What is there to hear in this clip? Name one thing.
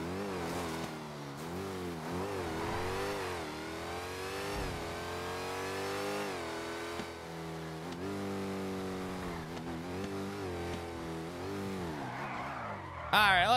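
A car engine roars and revs up and down as it speeds along.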